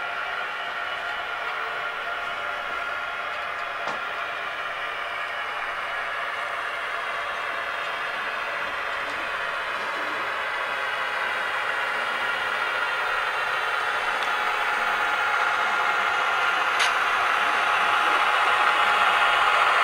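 Model train wheels click and rattle along the tracks.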